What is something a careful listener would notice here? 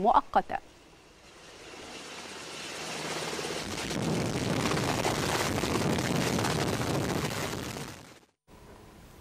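A helicopter's rotor roars loudly as it hovers.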